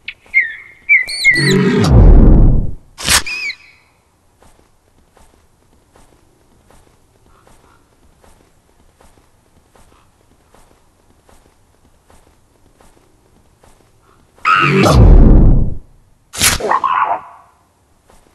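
A walrus lets out a loud, deep bellowing roar.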